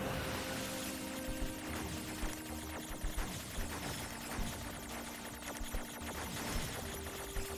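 Video game shots and blasts pop rapidly.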